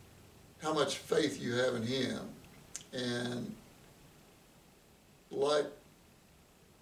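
An older man speaks calmly and close to a microphone, in short phrases.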